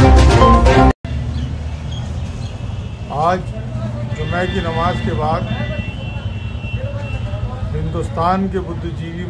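A man speaks calmly over a phone line.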